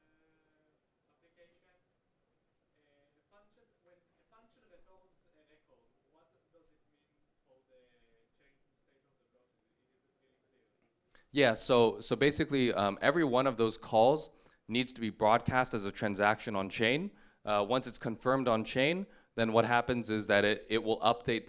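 A young man speaks calmly into a microphone, heard through loudspeakers in a large hall.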